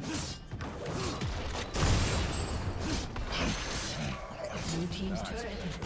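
Game spells and attacks crackle and clash in a fight.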